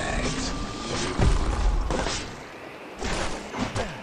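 Gunshots and hits ring out in a fight.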